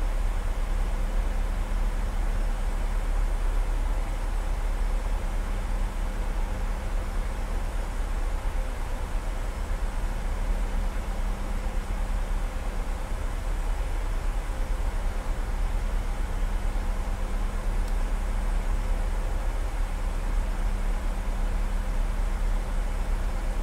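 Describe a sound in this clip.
A jet airliner's engines drone steadily from inside the cockpit.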